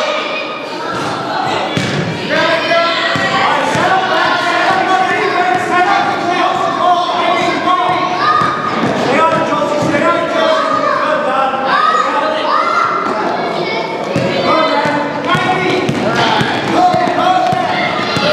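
Young children shout and call out in an echoing hall.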